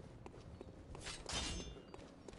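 A blade swishes through the air with a sharp whoosh.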